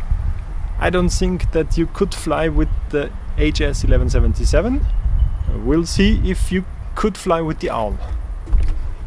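A man talks calmly and closely into a microphone.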